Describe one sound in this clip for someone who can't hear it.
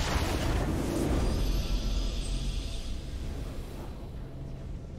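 A triumphant game fanfare swells and then fades away.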